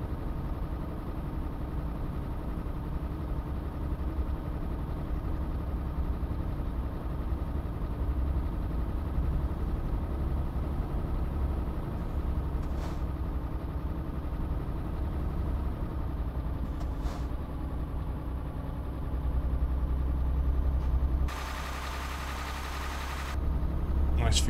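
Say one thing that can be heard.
A truck engine drones steadily at low revs.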